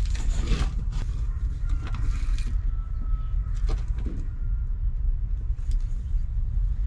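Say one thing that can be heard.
A small animal rustles and scratches in dry bedding close by.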